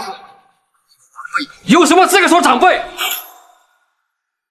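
A middle-aged man speaks angrily and forcefully, close by.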